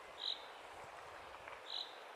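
A waterfall rushes in the distance.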